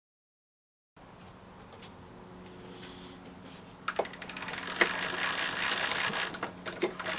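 A gramophone record hisses and crackles under the needle.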